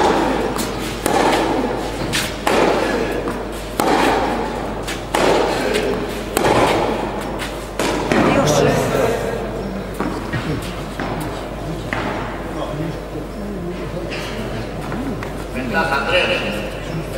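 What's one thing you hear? Footsteps scuff and slide on a clay court.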